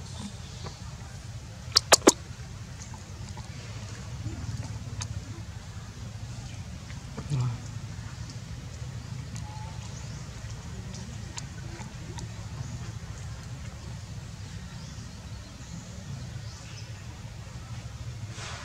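A monkey chews and munches on food close by.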